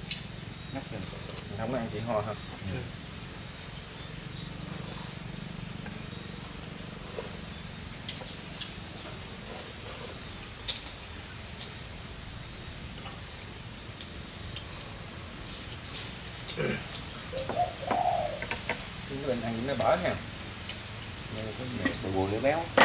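Chopsticks and spoons click against bowls.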